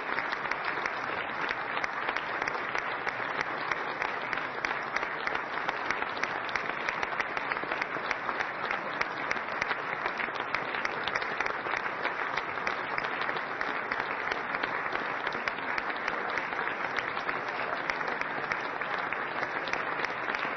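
A large crowd applauds steadily in an echoing hall.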